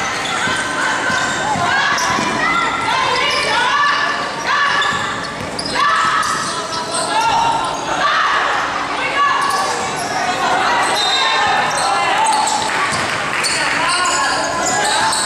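Children's voices murmur and call out across the hall.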